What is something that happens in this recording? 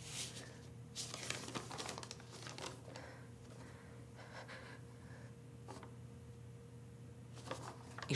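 A young woman speaks quietly and hesitantly.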